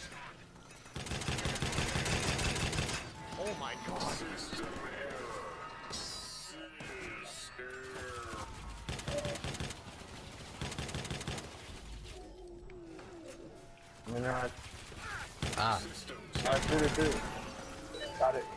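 A gun fires bursts of rapid shots.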